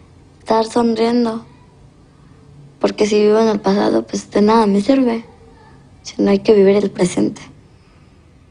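A young girl speaks calmly and close by, in short phrases.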